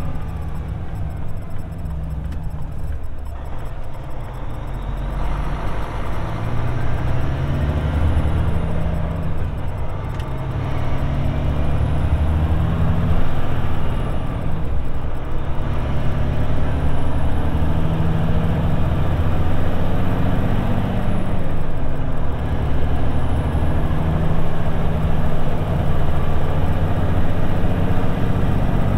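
A vehicle engine hums steadily from inside the cabin, rising as it speeds up.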